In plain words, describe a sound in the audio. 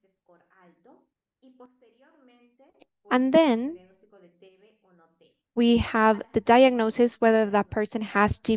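A young woman speaks calmly through a microphone on an online call.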